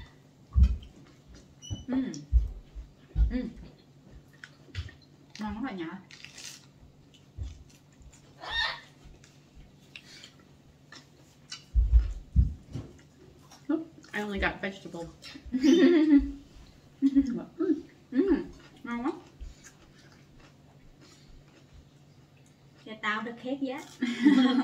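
People munch and crunch on food close by.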